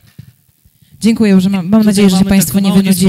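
A middle-aged woman speaks through a microphone.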